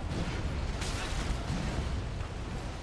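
Ice shatters and crashes loudly.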